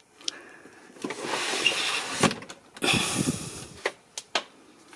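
A plastic drawer slides open and shut.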